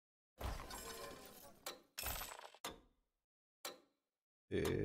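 Short magical whooshes and chimes sound in bursts.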